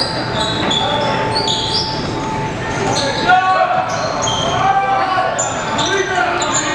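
Sneakers squeak sharply on a gym floor.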